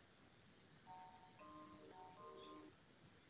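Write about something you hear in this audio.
A phone plays a short, soft ringtone melody.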